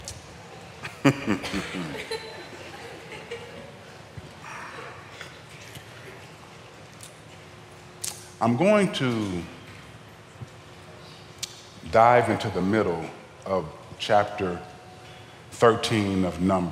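A man speaks slowly and with emotion through a headset microphone, with long pauses.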